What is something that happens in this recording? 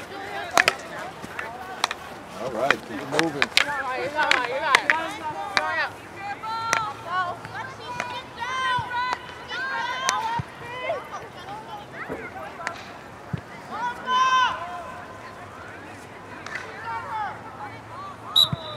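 Hockey sticks clack sharply against a ball and each other.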